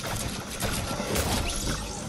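Pickaxe blows strike repeatedly.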